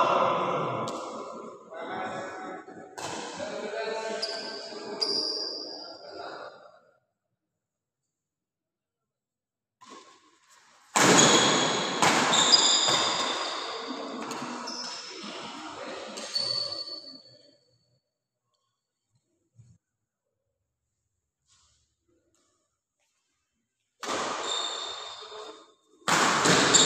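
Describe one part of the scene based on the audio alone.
Badminton rackets strike a shuttlecock.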